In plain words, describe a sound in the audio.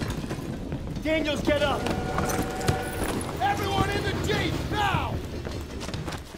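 A young man shouts urgently nearby.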